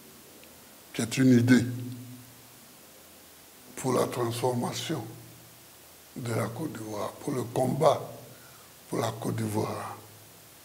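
An elderly man speaks calmly and slowly into a close microphone, in short phrases with pauses.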